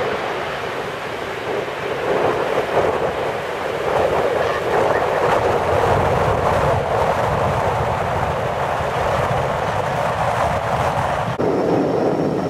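A jet engine roars loudly during takeoff.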